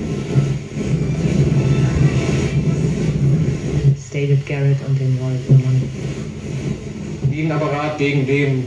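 A radio hums and hisses with static.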